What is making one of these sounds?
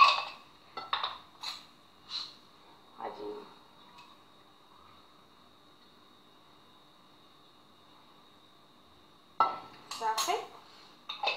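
A metal spoon clinks lightly against a glass bottle.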